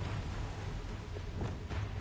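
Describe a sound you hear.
Footsteps run over forest ground.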